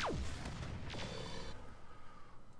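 Gunfire rattles in a short burst.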